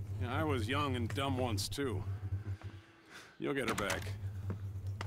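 A middle-aged man speaks calmly in a low voice.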